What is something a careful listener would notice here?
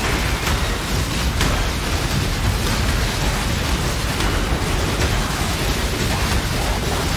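Spell blasts and magic explosions crackle and boom in rapid bursts.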